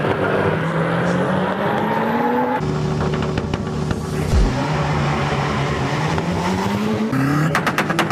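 A car engine revs loudly, its pitch rising and falling.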